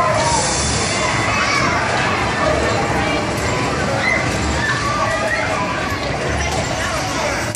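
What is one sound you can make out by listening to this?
A mechanical ride horse rocks with a low, rhythmic thumping hum.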